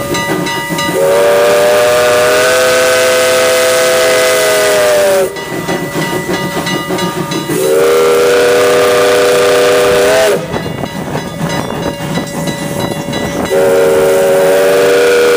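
A steam locomotive whistle blows in long, loud blasts.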